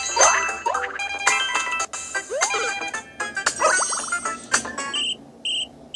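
Upbeat game music plays with quick chiming notes.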